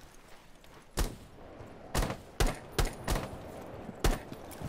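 A rifle fires single shots in sharp, spaced bursts.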